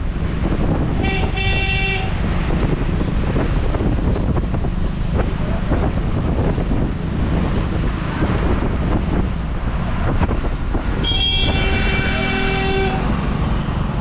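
A horn honks loudly.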